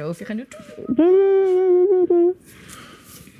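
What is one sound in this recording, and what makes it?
A man sings a long drawn-out note.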